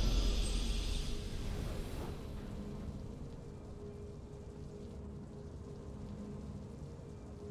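Triumphant game music swells and then settles into a soft, steady drone.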